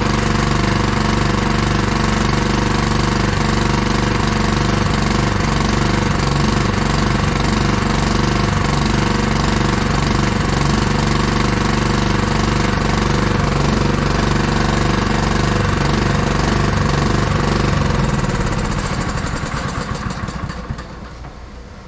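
A small petrol engine runs loudly and steadily, then cuts out and winds down.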